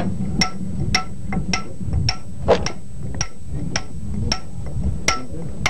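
A hammer strikes a metal chisel against stone in steady, ringing blows.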